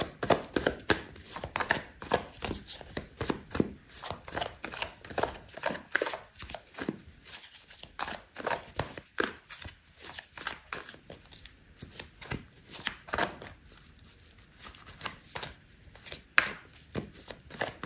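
Long fingernails tap and click against cards.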